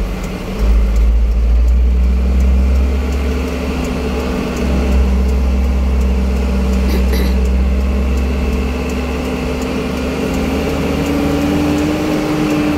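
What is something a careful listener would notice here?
A car engine hums from close by, with a low, steady road rumble.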